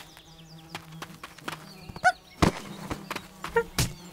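Small quick footsteps patter across the ground.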